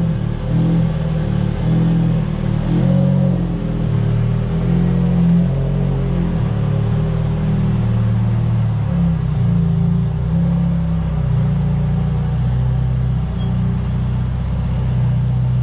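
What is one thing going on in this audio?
A sports car engine rumbles loudly as the car pulls slowly away.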